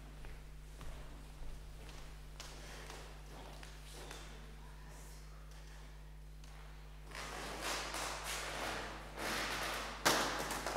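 Footsteps walk across a wooden floor in an echoing room.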